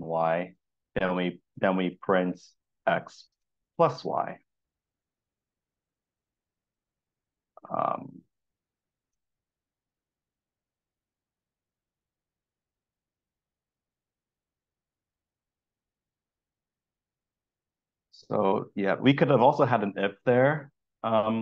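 A man talks calmly through a microphone, in short bursts with long pauses.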